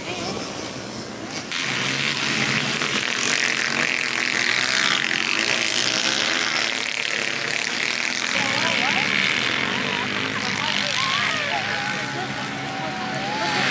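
Small dirt bike engines whine and rev up and down.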